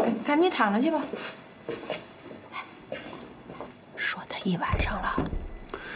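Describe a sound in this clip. A middle-aged woman speaks with concern, close by.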